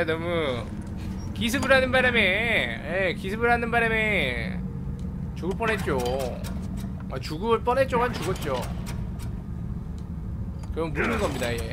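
A small engine is cranked by a pull cord and sputters.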